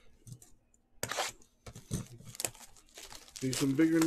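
Plastic wrapping crinkles and tears.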